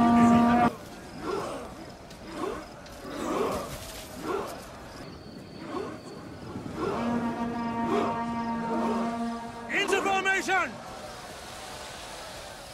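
A body of soldiers tramps forward in step through grass.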